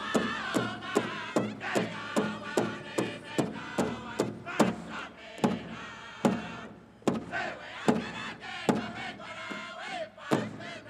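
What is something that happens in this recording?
A group of men sing loudly together in high, wavering voices.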